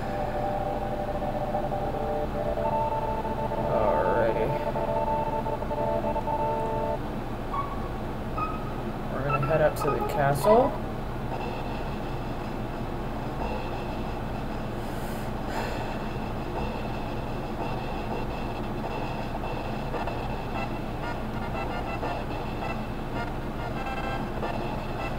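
Melodic video game music plays.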